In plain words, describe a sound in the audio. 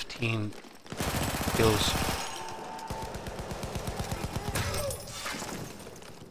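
A rifle fires loud shots in an echoing hall.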